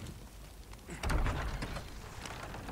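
Heavy wooden doors are pushed open with a loud creak and thud.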